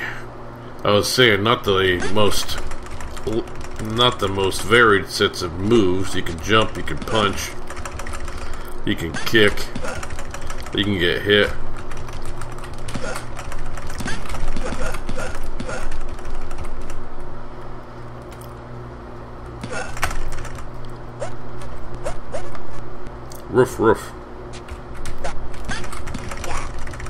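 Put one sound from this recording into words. Chiptune arcade music plays steadily.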